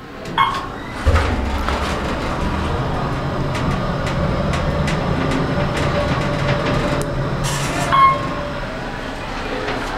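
An elevator hums low and steady as it moves.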